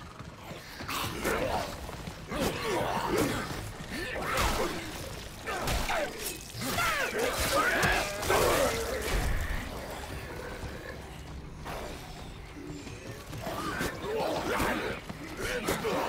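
Blades slash and strike flesh with wet thuds.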